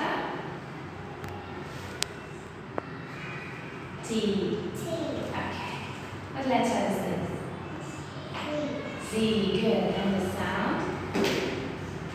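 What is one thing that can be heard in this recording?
A small girl answers softly.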